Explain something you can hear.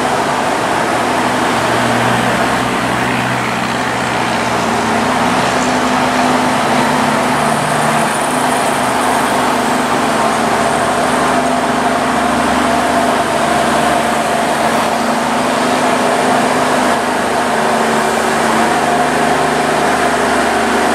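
A diesel locomotive engine rumbles steadily as a train slowly pulls in.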